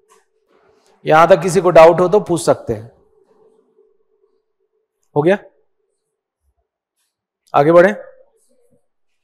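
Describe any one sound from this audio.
A man speaks clearly and close to a microphone, in short bursts with pauses.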